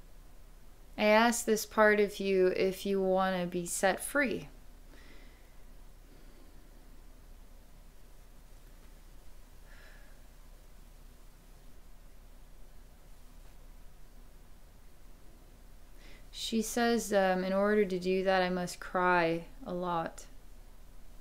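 A woman speaks calmly and slowly into a close microphone, with long pauses.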